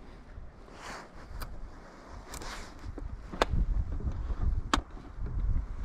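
A fishing reel whirs as its handle is wound.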